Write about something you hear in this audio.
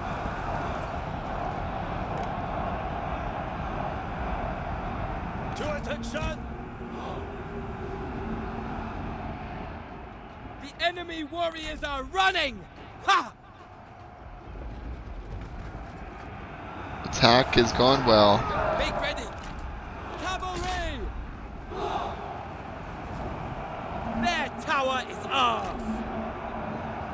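Battle clamour of many soldiers fighting rumbles steadily.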